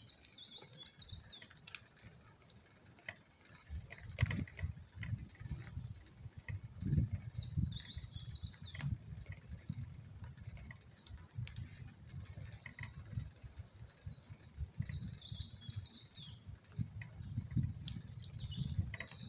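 A wire bicycle basket rattles over bumps in the path.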